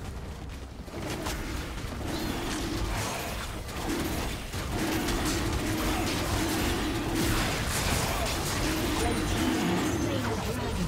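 Magic blasts and hits crackle in a fierce fight.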